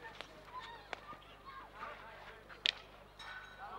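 A field hockey stick strikes a ball outdoors.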